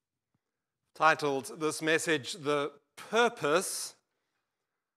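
An older man speaks calmly through a microphone.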